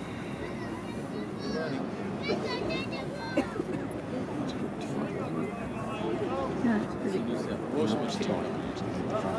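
Several men and women chat and murmur nearby outdoors.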